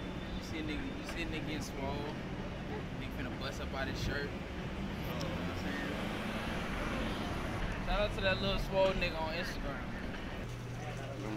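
A young man talks casually close by, outdoors.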